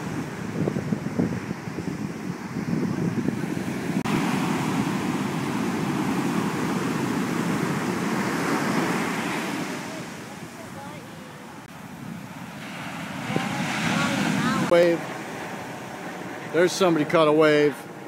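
Ocean waves crash and wash loudly onto the shore.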